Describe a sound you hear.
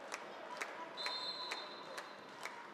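A referee's whistle blows a short shrill blast in an echoing hall.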